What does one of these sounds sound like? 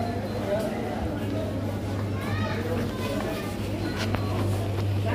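People chatter nearby indoors.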